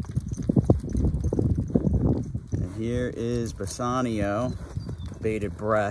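A horse's hooves thud on soft dirt close by.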